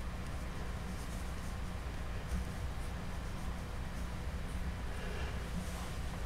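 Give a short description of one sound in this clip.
Small plastic parts click softly as hands handle them.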